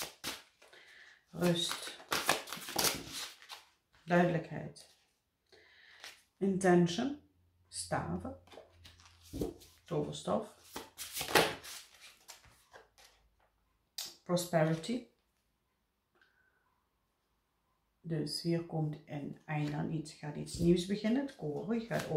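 Cards shuffle and slide against each other.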